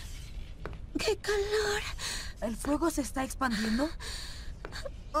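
A boy speaks with surprise.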